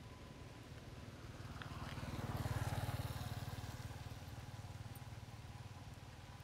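A motorbike passes by on the road.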